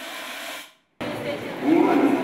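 A crowd of people chatter and talk nearby.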